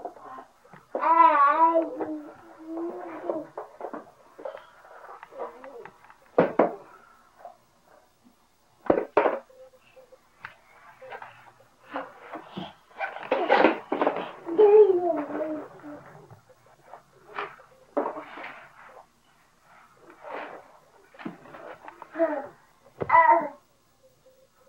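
A toddler babbles and squeals nearby.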